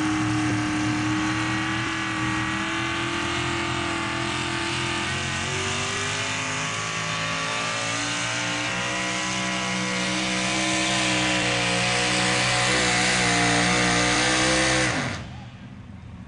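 A pickup truck engine roars loudly at high revs, then cuts off.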